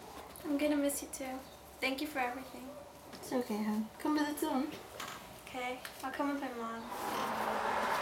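A young woman talks casually nearby.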